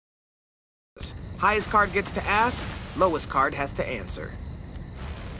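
A young woman speaks calmly, heard close.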